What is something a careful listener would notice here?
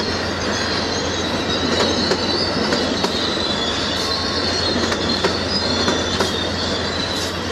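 Wheels squeal against the rails.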